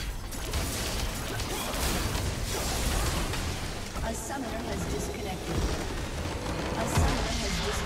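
Magic blasts and explosions crackle during a fight.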